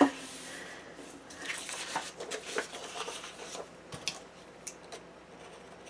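Paper rustles and crinkles as pages are handled.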